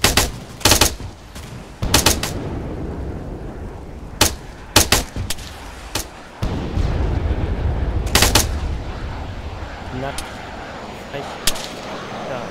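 A light machine gun fires loud shots.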